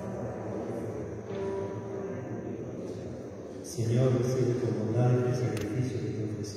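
A middle-aged man speaks steadily into a microphone in an echoing hall.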